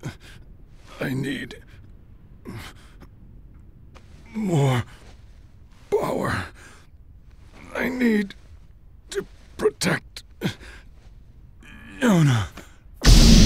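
A young man speaks haltingly in a weak, strained voice.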